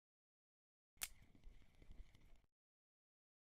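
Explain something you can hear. A fishing reel whirs softly as line is wound in.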